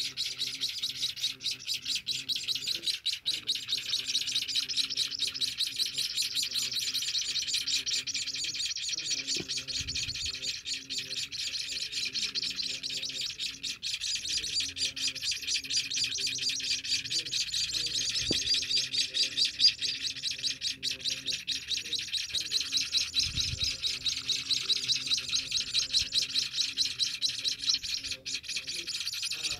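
Baby birds chirp rapidly and insistently close by.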